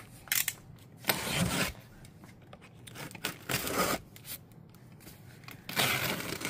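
A knife blade scrapes across tape on a cardboard box.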